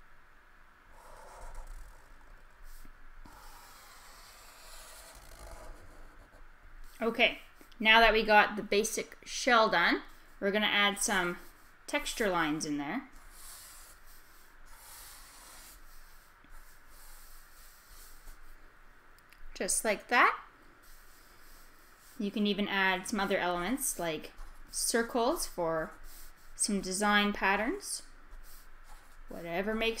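A felt-tip marker squeaks and scratches softly across paper.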